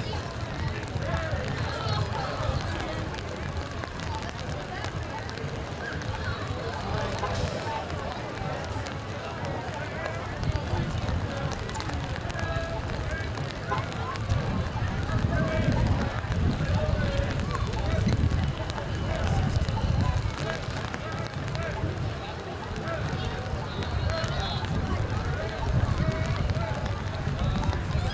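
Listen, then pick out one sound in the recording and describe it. Rain falls steadily on a wet street, outdoors.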